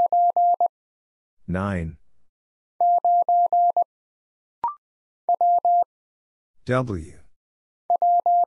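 Morse code beeps in short, quick bursts of a steady tone.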